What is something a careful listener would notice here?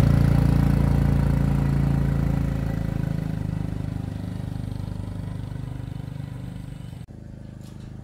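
A motor scooter pulls away and fades into the distance.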